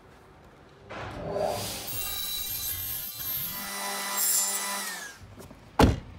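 A table saw whines loudly as it cuts through a board.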